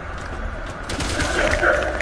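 A creature snarls and groans close by.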